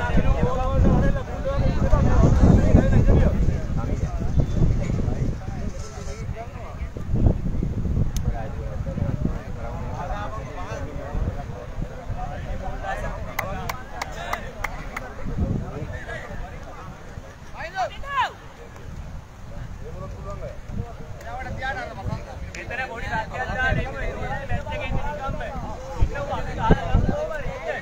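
A group of young men talk and call out together outdoors.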